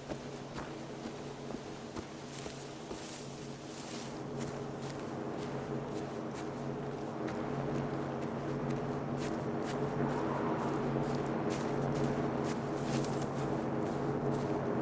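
Footsteps crunch steadily over grass and ground.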